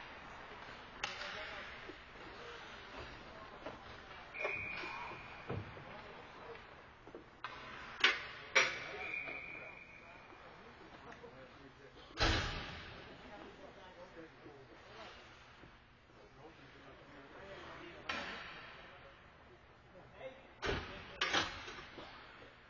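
Hockey sticks and pucks clack with sharp knocks that echo around the rink.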